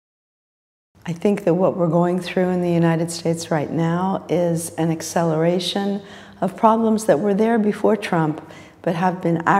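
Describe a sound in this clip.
A woman speaks calmly and clearly, close to a microphone.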